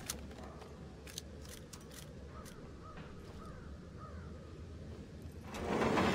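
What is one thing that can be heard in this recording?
A screwdriver scrapes and clicks against a metal grate.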